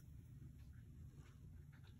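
A finger rubs against the bottom of a glass bowl.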